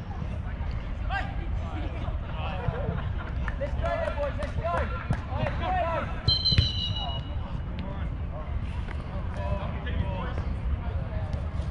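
Young men shout and call out across an open pitch outdoors.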